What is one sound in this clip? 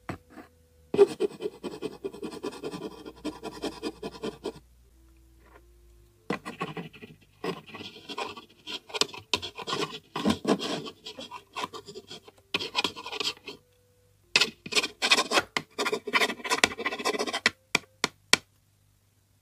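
A pencil scratches across paper.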